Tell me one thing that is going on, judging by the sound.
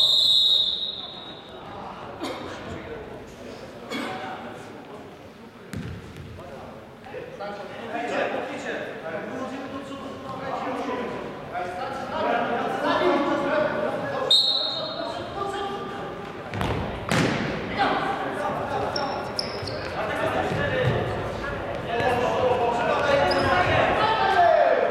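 Men shout and call out to each other across a large echoing hall.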